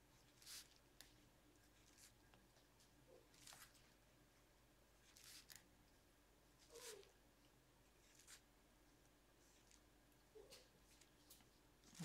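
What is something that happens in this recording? A pen scratches lightly across paper in short strokes.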